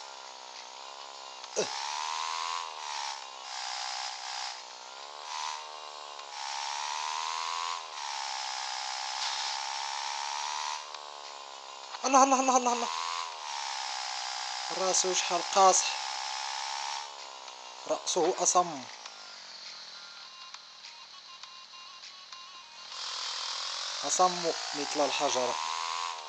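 A motorbike engine revs up and down steadily.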